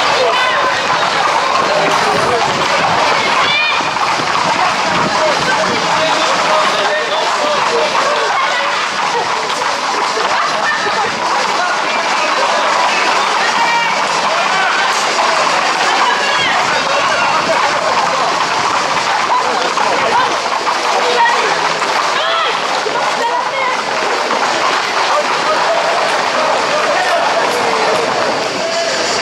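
A crowd shouts and cheers with animation outdoors.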